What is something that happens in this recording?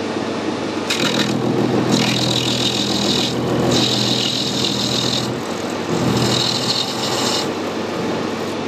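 A cutting tool scrapes and squeals against spinning brass.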